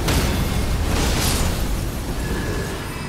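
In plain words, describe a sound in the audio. A fiery magic blast roars and crackles.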